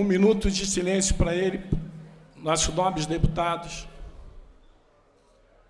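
A man speaks loudly through a microphone in an echoing hall.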